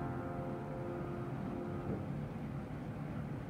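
A flute plays a melody.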